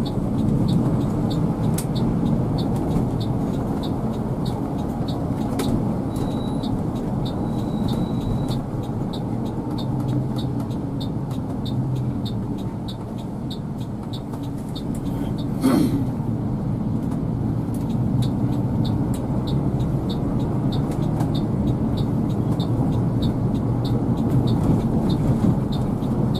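A heavy vehicle's engine rumbles steadily while driving on a road.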